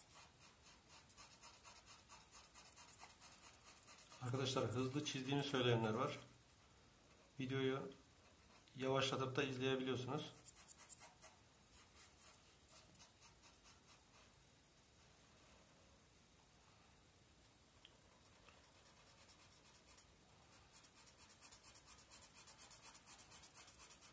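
A felt-tip marker scratches quickly back and forth on paper.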